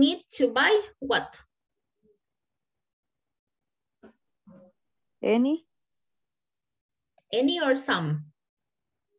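A woman speaks in short phrases over an online call.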